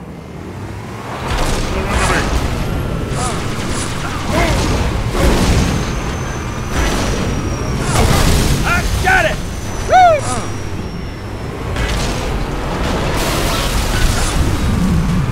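A vehicle engine rumbles as it drives over rough ground.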